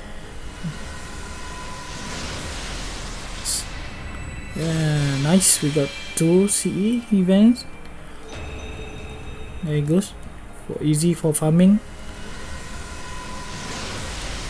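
A shimmering magical whoosh swells and fades.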